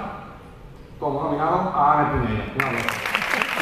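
A young man speaks through a microphone over loudspeakers in a large hall.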